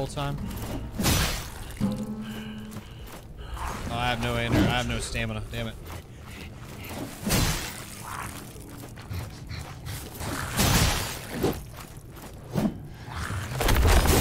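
Swords clash and strike in a game fight.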